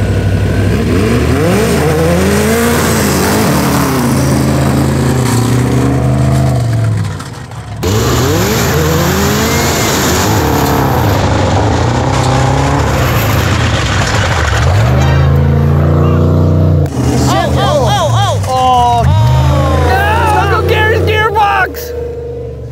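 A buggy engine roars and revs up and down at close range.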